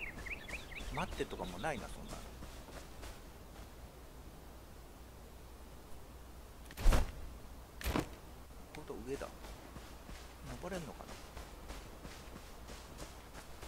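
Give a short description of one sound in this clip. Bare feet run over grass.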